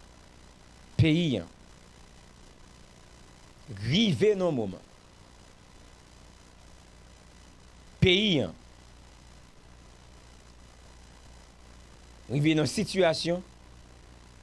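A young man speaks calmly into a close microphone in short bursts with pauses.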